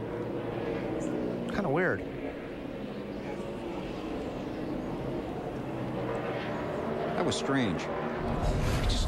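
Race car engines roar at high speed.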